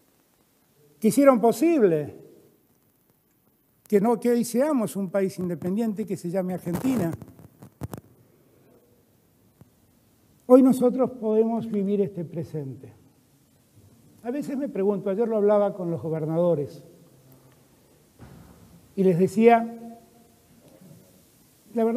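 A middle-aged man speaks slowly and gravely into a microphone, with pauses between phrases.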